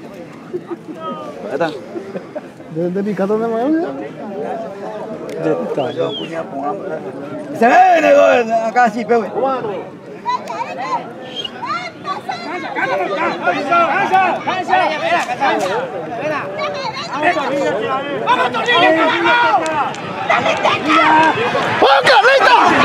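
A crowd of men shouts and cheers excitedly outdoors, growing louder.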